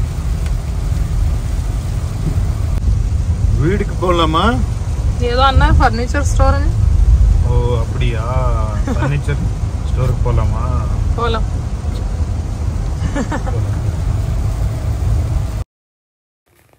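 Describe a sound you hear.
A car rumbles steadily along a wet road.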